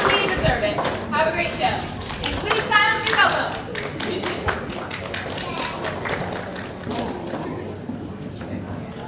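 An audience claps and cheers in a large hall.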